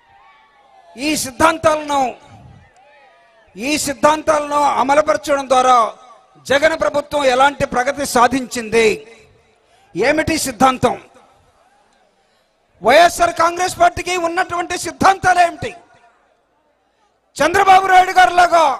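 A man speaks forcefully through a microphone and loudspeakers, outdoors.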